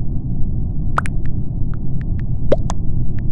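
Soft keyboard clicks tap out a few quick keystrokes.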